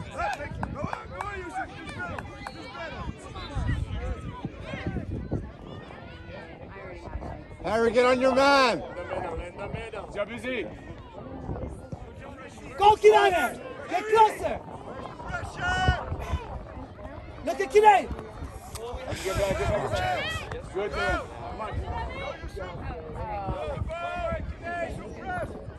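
Spectators shout and cheer outdoors, with many voices, near and far.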